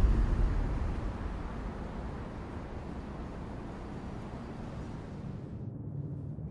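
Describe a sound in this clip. Old cars rumble along a street.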